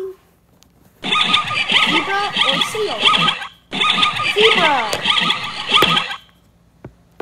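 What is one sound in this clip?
A zebra barks and brays repeatedly.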